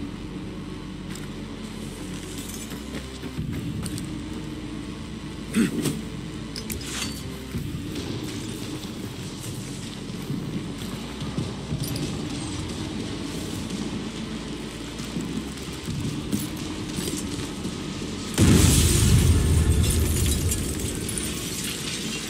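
Footsteps crunch through dry grass.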